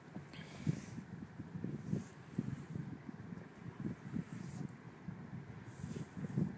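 A hand swishes gently through shallow water over sand.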